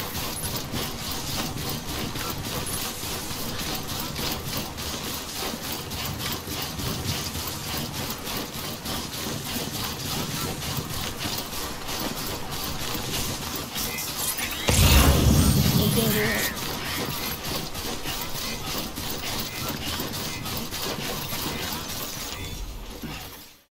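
Footsteps crunch steadily through grass.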